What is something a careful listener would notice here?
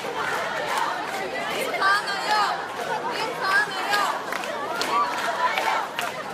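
A crowd of young women chants and shouts loudly outdoors.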